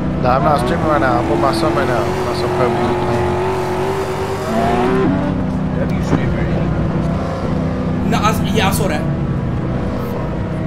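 A car engine drones steadily and shifts pitch.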